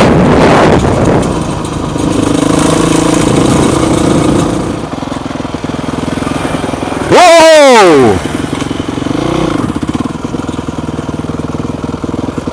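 A motorbike engine hums and revs steadily up close.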